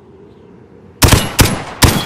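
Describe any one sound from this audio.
A rifle fires loud, sharp shots in quick succession.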